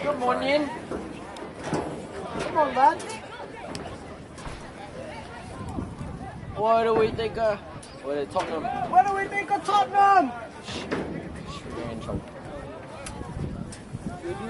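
A football thumps as it is kicked.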